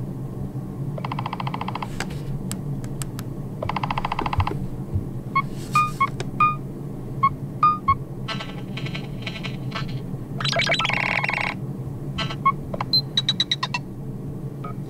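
A phone plays short electronic ringtone tunes through its small speaker.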